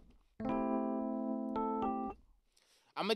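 An electric piano plays a chord.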